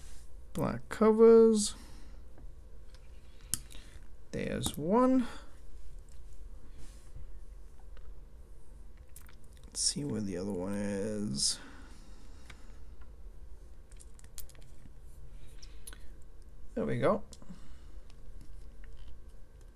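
Plastic toy bricks click and rattle as hands sort and snap them together.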